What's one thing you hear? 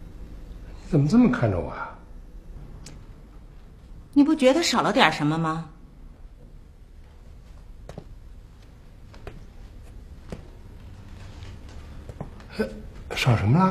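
A middle-aged man speaks up close, in a questioning tone.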